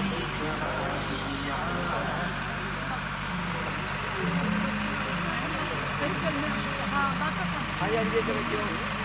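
Several women chatter and talk over one another nearby.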